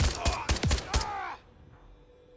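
A rifle fires several rapid shots.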